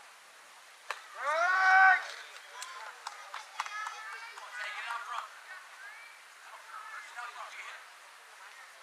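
Young players shout and cheer excitedly outdoors.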